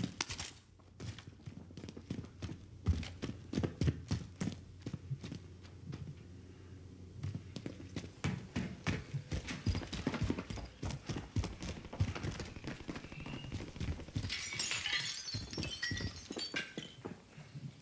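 Footsteps thud quickly and steadily on a hard floor and paving.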